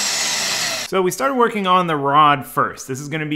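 A power drill whirs.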